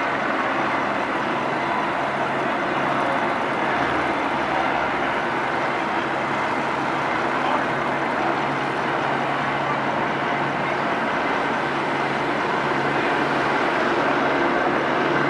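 A fire engine's motor idles steadily.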